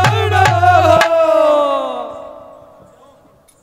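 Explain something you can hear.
A man sings a long held note loudly through a loudspeaker, then fades away.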